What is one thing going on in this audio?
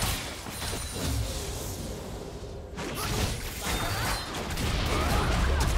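Game sound effects chime as characters level up.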